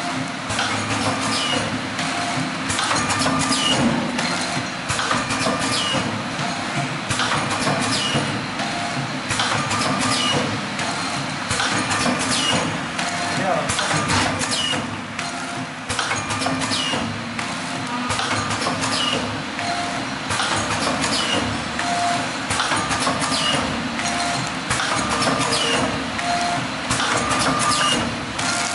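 A packaging machine runs with a steady mechanical hum.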